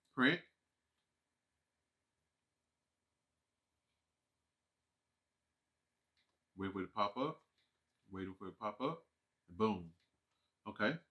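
A man speaks casually into a microphone, in short bursts with pauses.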